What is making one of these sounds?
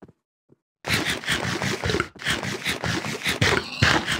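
A game character munches food with quick crunching bites.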